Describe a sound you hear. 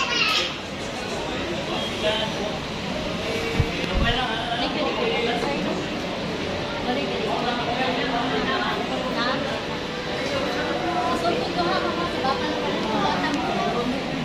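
A large crowd chatters all around.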